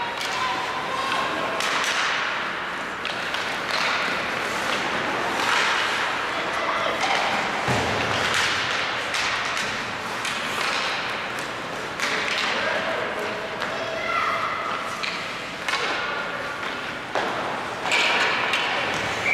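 Hockey sticks clack against a puck and the ice.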